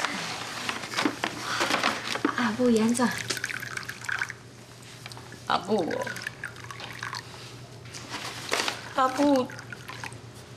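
A young woman asks questions gently.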